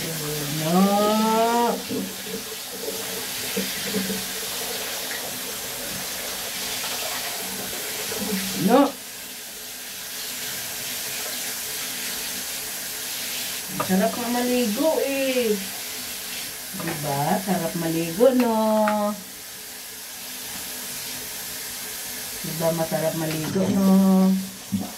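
A cat meows loudly and plaintively.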